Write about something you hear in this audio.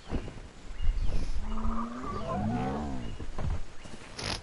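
A large winged creature gives a warbling call.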